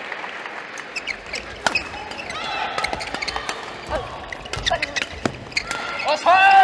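Shuttlecock hits crack sharply from rackets during a badminton rally.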